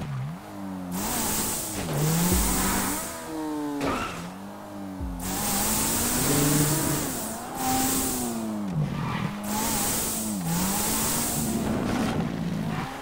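Tyres screech and skid on the road.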